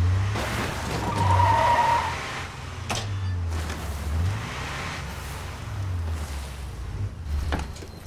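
An engine rumbles low as a vehicle drives along.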